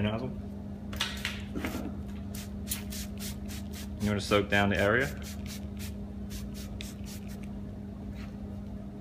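A spray bottle hisses in quick repeated squirts.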